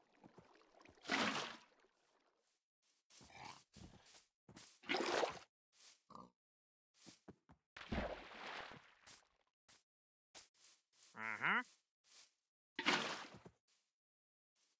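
Water splashes and gurgles in short bursts.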